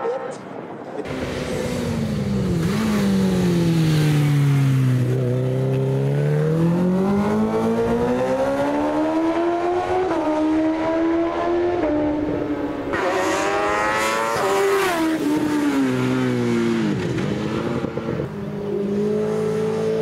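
A racing motorcycle engine roars loudly, its pitch rising and falling as it shifts gears.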